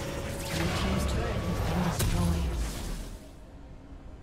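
Loud video game explosions crash and rumble, then fade.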